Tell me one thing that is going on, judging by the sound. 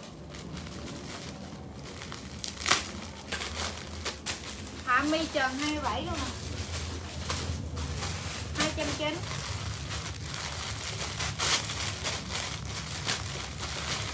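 Plastic bags crinkle as they are handled.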